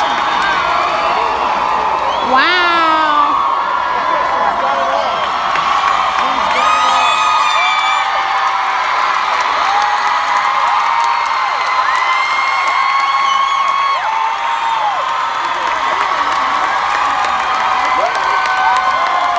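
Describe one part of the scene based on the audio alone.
A large crowd cheers and screams loudly in a big hall.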